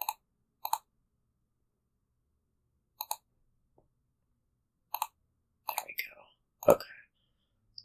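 Short card-flip sound effects click as cards are played.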